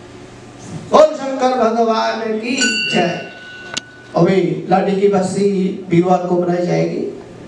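A man chants through a microphone and loudspeaker.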